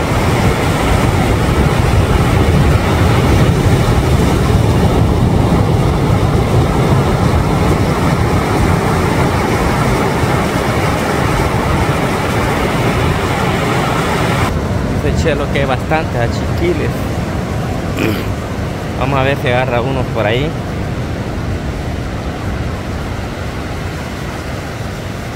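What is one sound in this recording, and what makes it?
Waves crash and roll in steadily.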